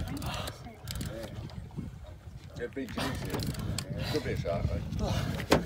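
A fishing reel clicks as it winds.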